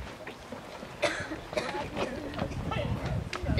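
Footsteps thud on a wooden deck.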